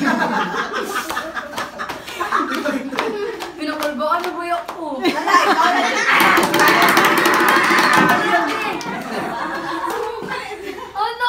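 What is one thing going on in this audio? A group of young people laugh and chatter together close by.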